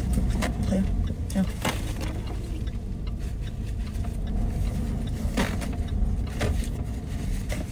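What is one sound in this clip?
Paper towel rustles and tears.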